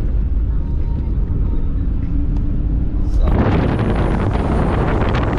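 A car engine rumbles as the car drives along a dirt track.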